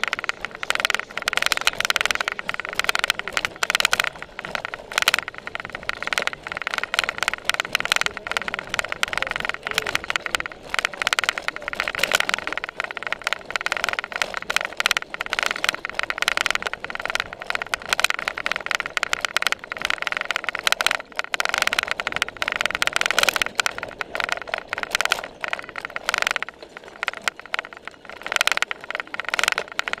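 A bicycle rattles and clatters over bumpy grass.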